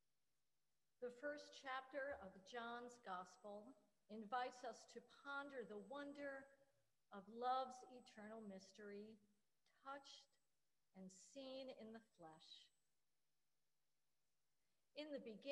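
A man speaks calmly and slowly in a large, quiet, echoing hall.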